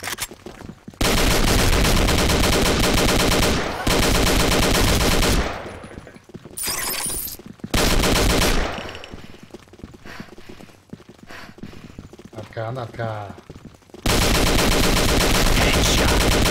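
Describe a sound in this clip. An automatic rifle fires in long rapid bursts.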